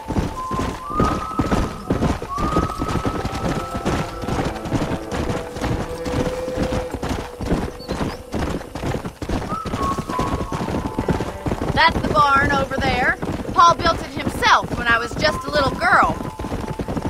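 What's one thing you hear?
Horse hooves gallop steadily over hard ground.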